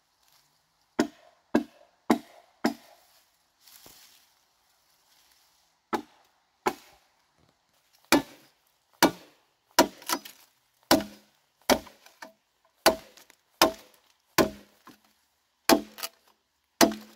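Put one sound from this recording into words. A machete chops repeatedly into a bamboo stalk with sharp hollow knocks.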